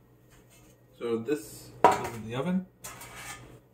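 A metal baking tray scrapes and clanks against a counter.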